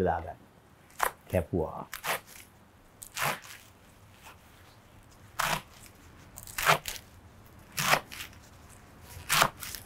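A knife chops leafy greens on a wooden board.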